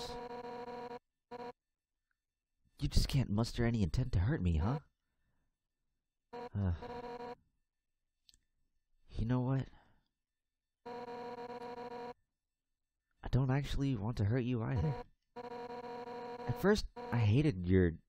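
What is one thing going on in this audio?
Rapid electronic beeps chatter in quick bursts.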